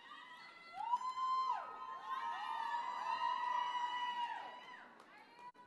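A crowd cheers and whoops in a large hall.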